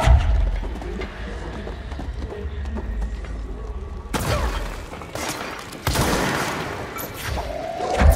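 Heavy objects thud and clatter as they are thrown.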